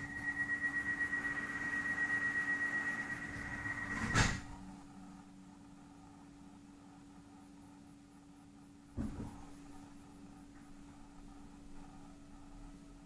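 An electric train hums steadily as it pulls slowly away.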